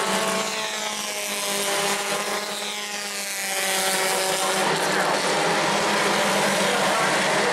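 Race car engines roar loudly as the cars speed past, rising and falling in pitch.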